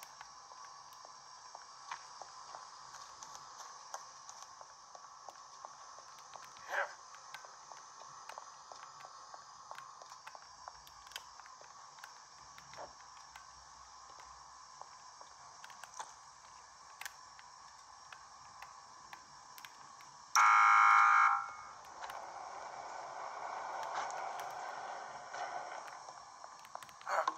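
Buttons click softly under thumbs.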